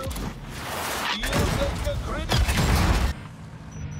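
Explosions blast and roar.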